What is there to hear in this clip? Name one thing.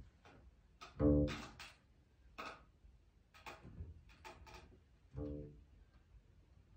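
A double bass is bowed, playing short, deep notes.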